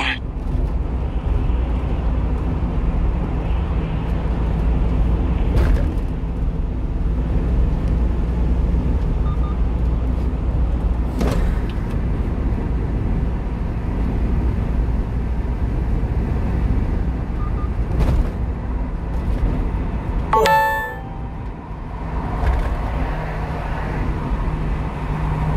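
Tyres roar on a smooth road.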